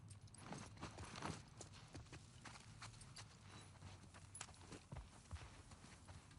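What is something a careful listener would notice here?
Footsteps run over hard ground.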